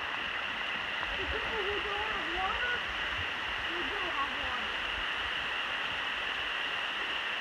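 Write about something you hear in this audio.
A stream and a waterfall rush and splash steadily outdoors.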